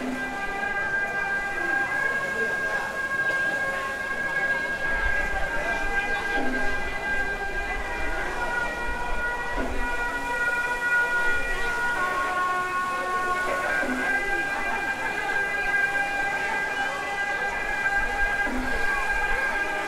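A large crowd of men and women chatters outdoors.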